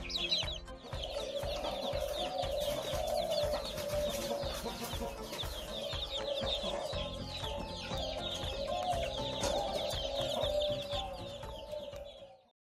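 Many chicks peep shrilly and constantly.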